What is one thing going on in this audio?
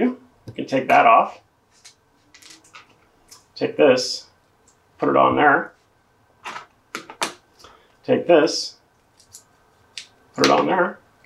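Small plastic parts click and tap as they are handled.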